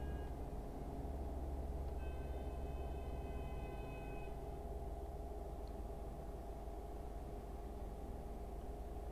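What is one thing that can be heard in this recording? A truck engine hums low and steady while driving.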